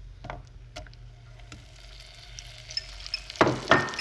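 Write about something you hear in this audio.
Butter drops into a hot pan.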